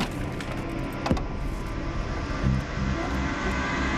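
A metal safe door clicks open.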